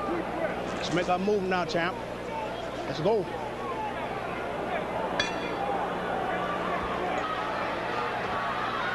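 A large crowd murmurs and chatters in an echoing arena.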